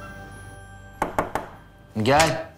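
Knocks sound on a door.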